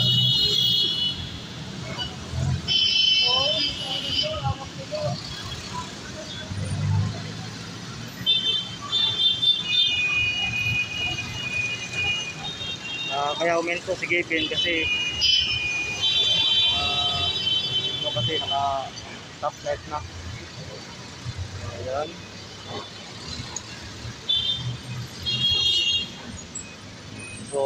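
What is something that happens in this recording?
Traffic rumbles by on a busy street throughout.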